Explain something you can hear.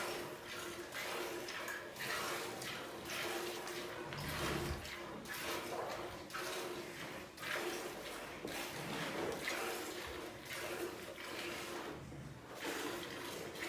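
Milk squirts rhythmically from a cow's teats milked by hand.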